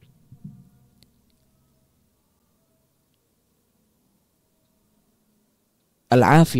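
A man speaks quietly and slowly into a microphone.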